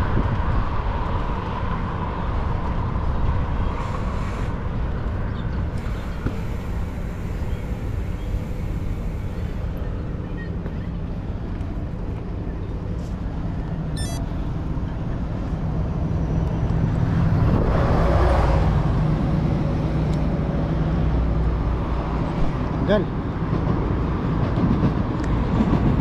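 Bicycle tyres roll along a paved path.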